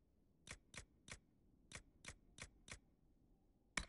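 Quick soft menu clicks tick in a row.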